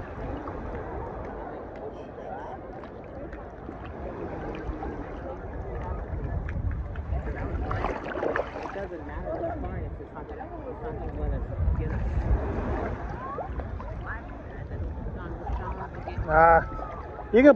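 Shallow water sloshes around wading legs.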